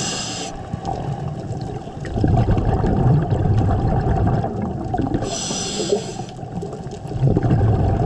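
Muffled underwater rumbling and crackling fill the water.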